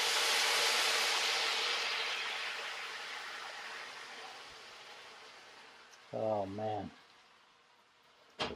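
Food sizzles loudly in a hot pan and slowly dies down.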